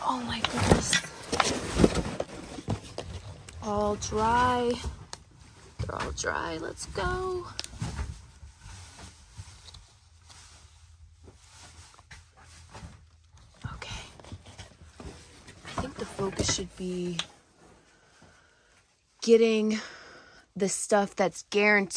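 Cardboard rustles and scrapes as it is pushed aside.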